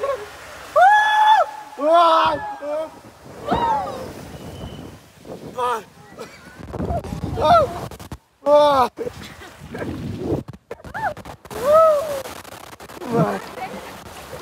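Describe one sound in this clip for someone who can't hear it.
Water rushes and splashes around a raft.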